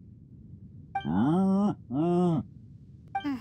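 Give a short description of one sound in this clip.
A bull moos twice.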